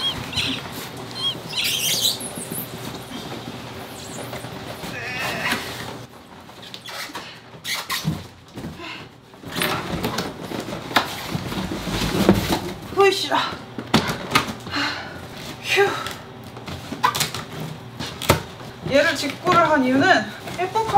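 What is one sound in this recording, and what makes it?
Cardboard rustles and scrapes as a box is pulled and shifted.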